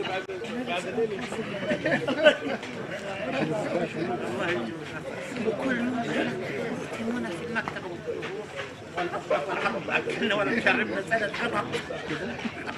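A crowd of men chatters and murmurs in a large room.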